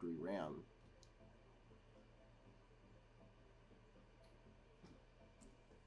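A memory stick clicks as it is pressed into its slot.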